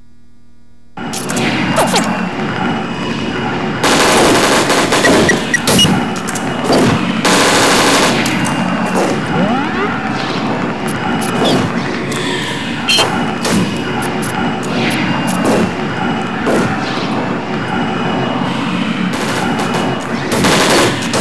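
A pistol fires sharp shots again and again.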